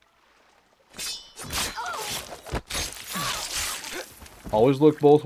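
A knife stabs into a body with a wet thud.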